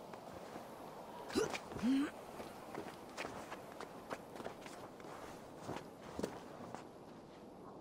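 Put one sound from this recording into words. Footsteps scuff and scrape on stone.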